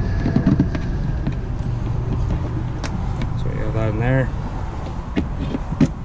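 Keys jingle and click in a lock.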